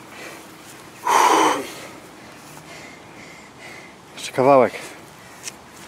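A man grunts loudly with effort.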